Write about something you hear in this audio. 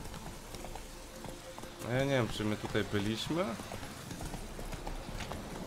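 A horse's hooves thud on a dirt path.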